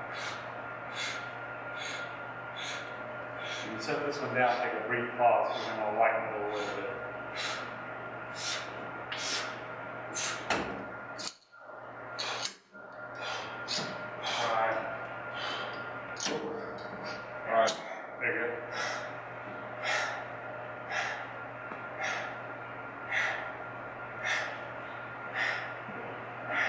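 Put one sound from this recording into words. A young man exhales sharply and rhythmically with each lift.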